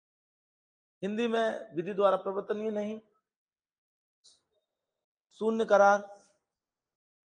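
A middle-aged man speaks calmly into a microphone, in short bursts.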